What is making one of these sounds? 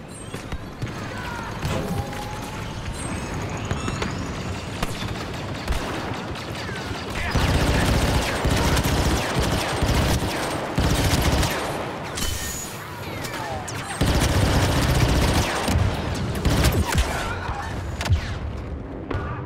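Laser blasters fire in rapid bursts with sharp zapping shots.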